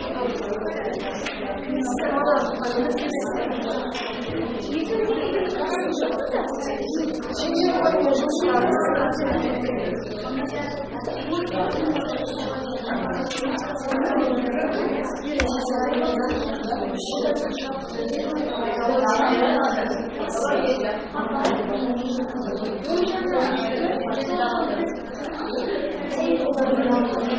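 A woman speaks calmly to a class nearby.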